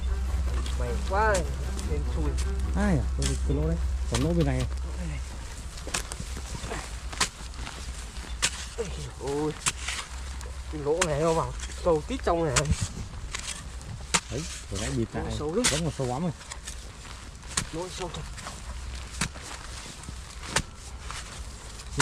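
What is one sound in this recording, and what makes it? A hoe chops into soil with dull thuds.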